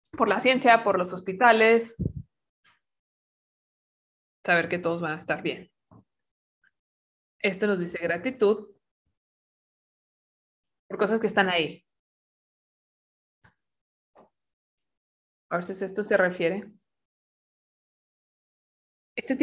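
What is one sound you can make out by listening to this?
A woman speaks calmly and slowly through a microphone, with long pauses.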